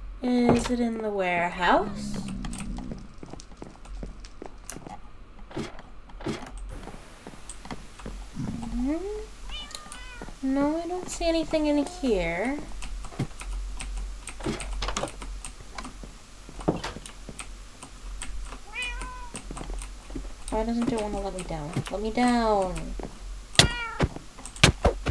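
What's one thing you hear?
Footsteps tap on wooden floor in a game.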